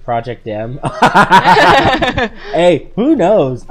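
A man laughs loudly close to a microphone.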